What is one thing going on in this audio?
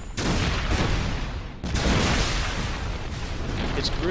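Loud explosions roar and rumble.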